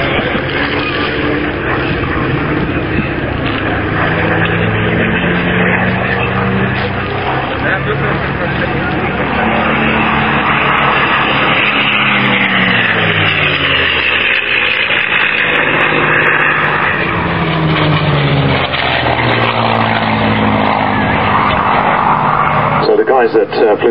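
A propeller plane's engine drones loudly overhead, rising and falling in pitch as it passes.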